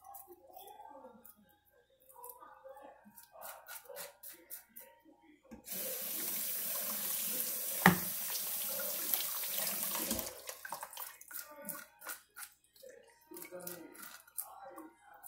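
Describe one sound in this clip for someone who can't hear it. A knife scrapes scales off a fish with quick rasping strokes.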